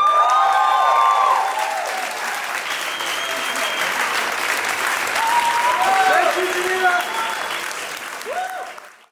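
A crowd claps and applauds in a large echoing hall.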